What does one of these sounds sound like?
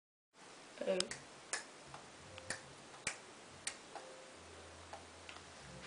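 Buttons on a phone click sharply a few times.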